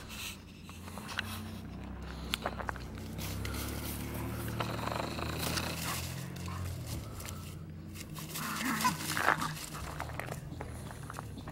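Dogs' paws patter and rustle through dry leaves.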